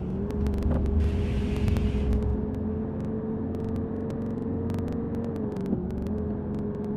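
A bus engine hums steadily while driving at speed on a road.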